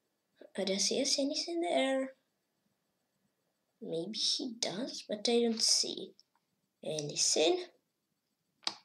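A boy speaks calmly and close into a microphone, in short bursts.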